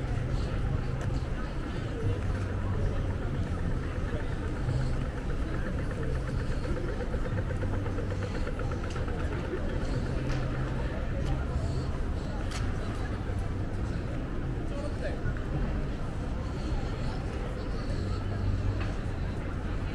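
A busy outdoor pedestrian street hums with a steady murmur of crowd noise.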